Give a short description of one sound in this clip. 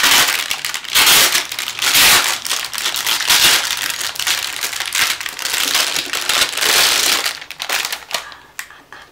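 Plastic wrapping crinkles and rustles as hands pull it open.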